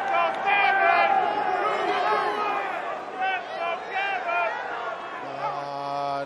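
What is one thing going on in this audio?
A large arena crowd chants loudly in unison.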